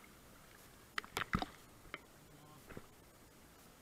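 A paddle splashes into the water.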